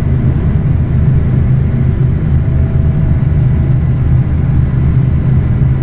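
Tyres roll on a smooth road.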